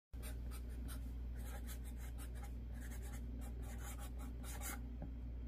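A marker pen squeaks and scratches in short strokes on paper, close up.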